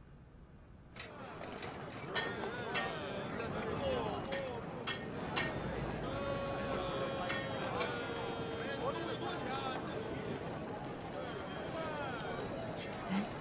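A crowd of people chatter and call out in a busy street.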